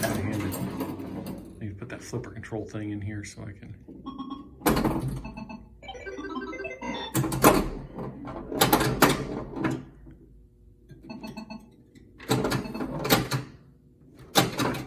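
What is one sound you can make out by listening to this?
A pinball machine's bumpers and flippers clack sharply.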